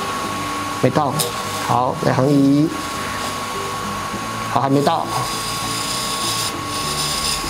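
A wood lathe hums steadily.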